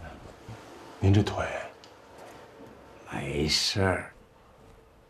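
A young man speaks quietly and with concern, close by.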